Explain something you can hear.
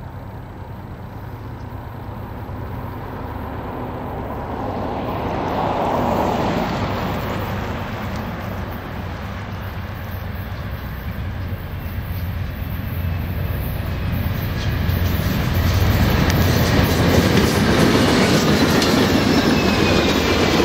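A diesel locomotive engine rumbles loudly, growing closer.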